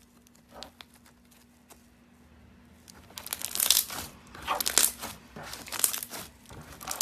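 Soft slime squishes, crackles and pops between fingers.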